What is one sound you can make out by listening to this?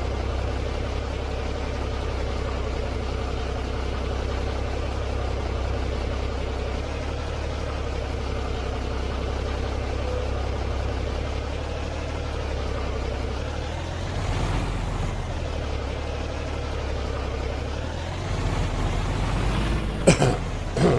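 A diesel truck engine idles with a low, steady rumble.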